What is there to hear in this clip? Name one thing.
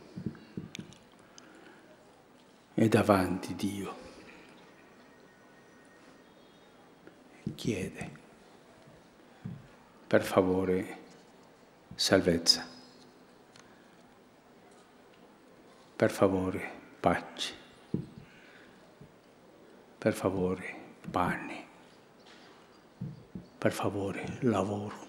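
An elderly man speaks slowly and solemnly through a microphone, in short phrases with pauses, echoing outdoors.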